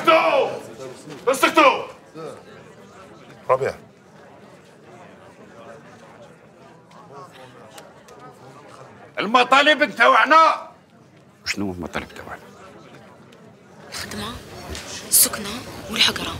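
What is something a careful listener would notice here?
A crowd murmurs quietly in the background.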